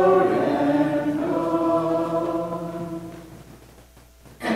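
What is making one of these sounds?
A man sings a slow chant through a microphone in a large echoing hall.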